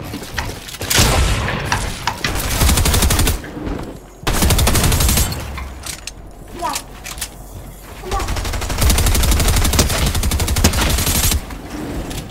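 Rapid clacking and thudding of walls being built in a game come in quick bursts.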